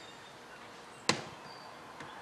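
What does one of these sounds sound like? A plastic box knocks down onto a metal chassis.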